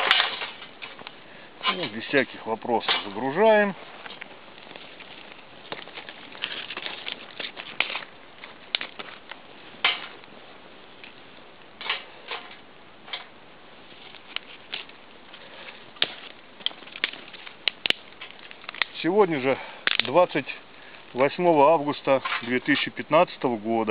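Dry twigs snap and crack.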